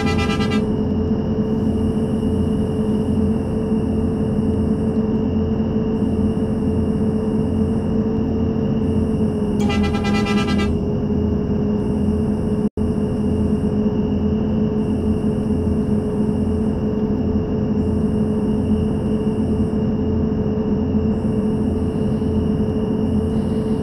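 A bus engine hums steadily at speed.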